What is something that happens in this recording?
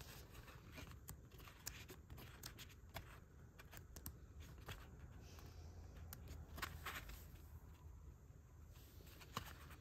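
Paper pages flip and rustle as a book is leafed through up close.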